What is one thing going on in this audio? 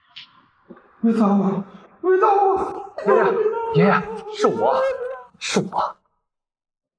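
A young man shouts in alarm close by.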